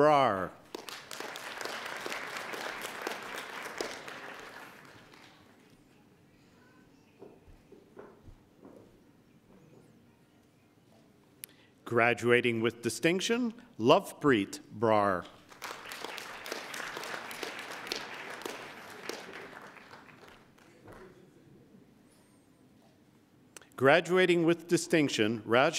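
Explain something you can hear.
An older man reads out names calmly through a microphone in a large echoing hall.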